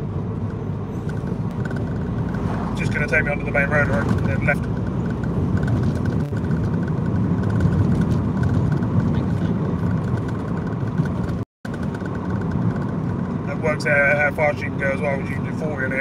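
A car engine hums steadily with a low road rumble from inside the car.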